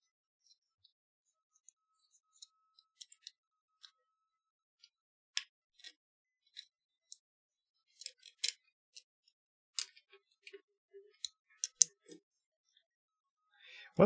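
Plastic cable links click and rattle as hands handle them.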